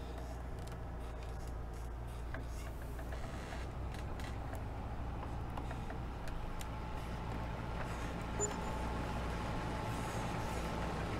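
A tractor engine drones steadily with a low hum.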